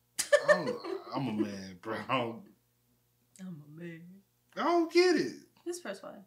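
A woman laughs softly close to a microphone.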